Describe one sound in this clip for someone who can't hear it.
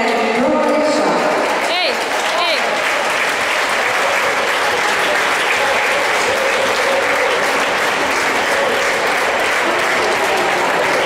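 A crowd applauds and cheers loudly in a large echoing hall.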